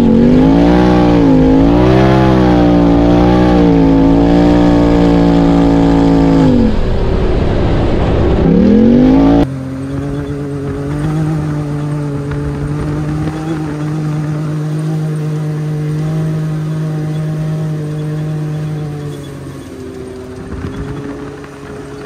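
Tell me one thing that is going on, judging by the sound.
Tyres rumble over a sandy dirt track.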